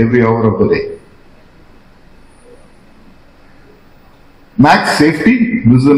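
A man speaks with animation through a microphone and loudspeakers.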